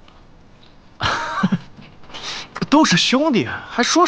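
Another young man speaks brightly and laughs.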